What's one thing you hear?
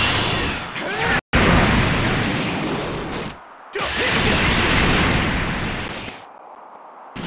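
An energy blast roars with a loud rushing burst.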